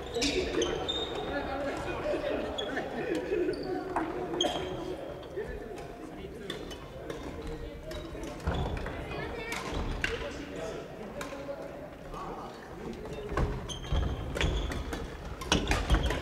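Shuttlecocks are struck with rackets, with quick pops.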